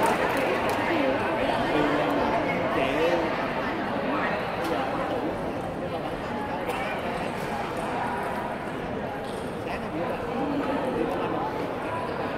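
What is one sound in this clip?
People chatter in a large echoing hall.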